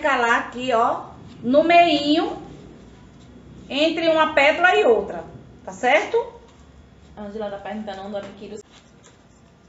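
A middle-aged woman speaks calmly and close by.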